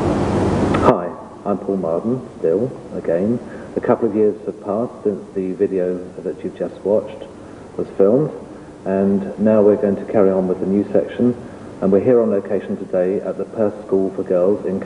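A middle-aged man speaks calmly and clearly, close by.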